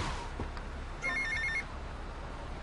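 A cell phone rings briefly.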